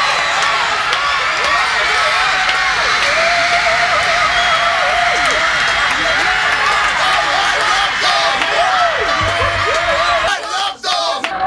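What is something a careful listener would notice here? A crowd of young girls screams and shouts excitedly outdoors.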